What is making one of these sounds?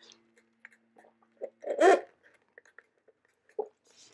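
A man sips a drink through a straw.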